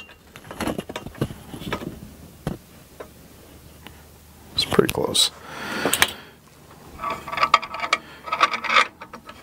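Metal parts clink and knock as they are handled.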